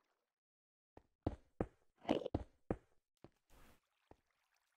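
A pickaxe taps and chips at stone in a game.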